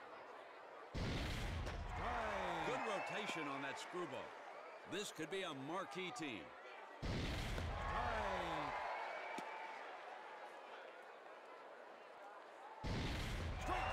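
A baseball smacks hard into a catcher's mitt.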